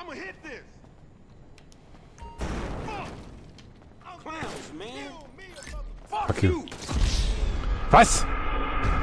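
Gunshots ring out nearby.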